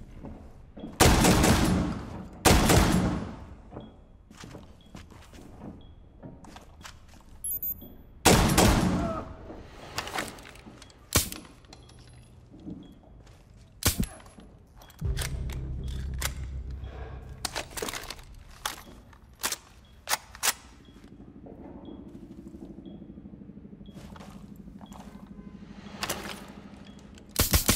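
Loud bursts of gunfire ring out in short volleys.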